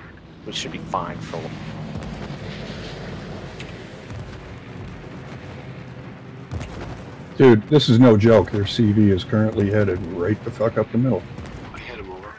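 Anti-aircraft shells burst in sharp pops.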